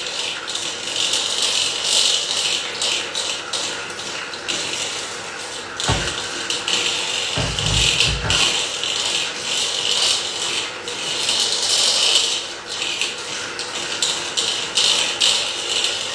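A pan clatters and scrapes on a stove.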